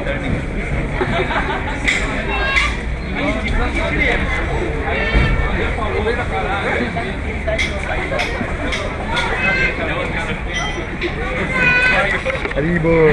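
A crowd of people talks and chatters all around in a busy, echoing hall.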